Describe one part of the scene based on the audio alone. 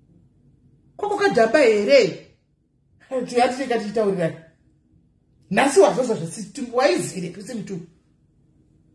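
A woman speaks with animation close to a phone microphone, in short bursts with pauses.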